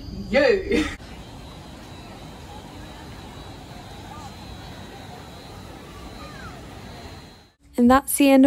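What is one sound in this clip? A fountain splashes steadily outdoors.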